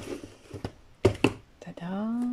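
A cardboard box knocks down onto a wooden tabletop.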